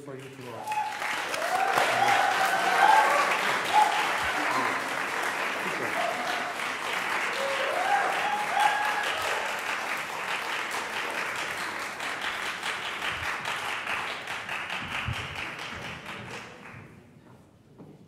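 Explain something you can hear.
An audience applauds loudly in a large echoing hall, then the applause fades.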